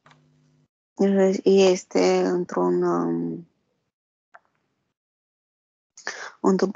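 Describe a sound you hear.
A woman speaks calmly and softly over an online call.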